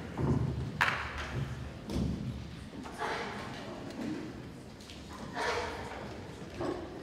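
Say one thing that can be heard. A choir of young singers sings in a large hall.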